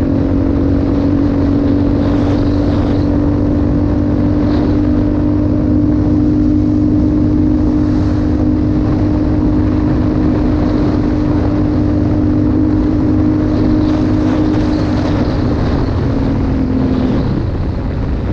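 A motorbike engine hums steadily at cruising speed.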